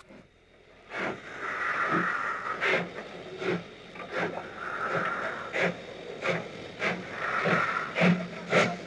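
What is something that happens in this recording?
A steam locomotive chuffs heavily as it pulls away.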